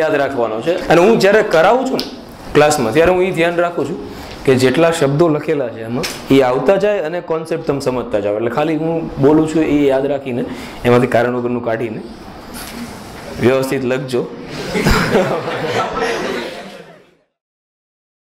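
A man lectures with animation through a clip-on microphone.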